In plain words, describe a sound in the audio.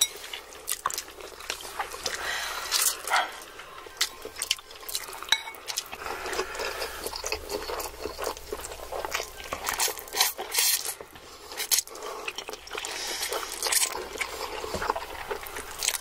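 People slurp noodles loudly and wetly, close to a microphone.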